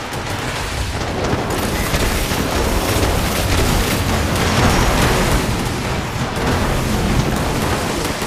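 An electric weapon crackles and buzzes as it fires rapidly.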